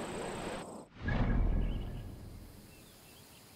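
A low whoosh sounds as a map menu opens.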